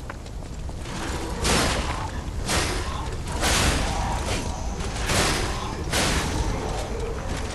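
Metal weapons strike and clang in a fight.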